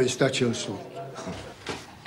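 A man speaks calmly up close.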